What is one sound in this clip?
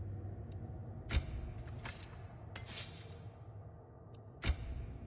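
Soft menu clicks and whooshes sound as selections change.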